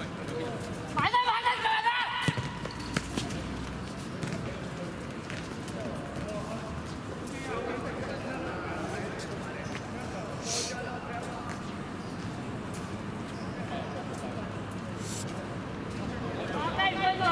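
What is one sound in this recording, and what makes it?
Young men shout to each other across an open court.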